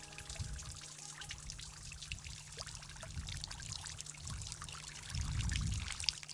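Raindrops splash onto water.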